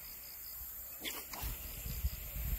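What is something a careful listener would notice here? A fishing rod swishes through the air as a line is cast.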